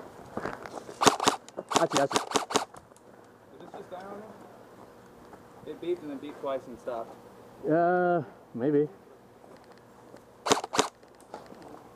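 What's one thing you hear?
Airsoft guns fire rapid bursts of sharp cracks.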